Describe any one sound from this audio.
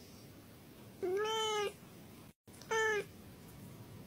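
A cat meows twice.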